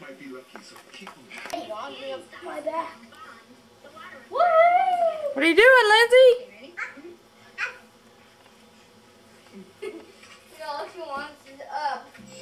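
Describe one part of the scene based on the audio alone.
A small child laughs and babbles while playing.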